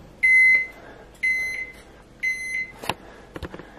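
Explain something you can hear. A microwave oven beeps three times.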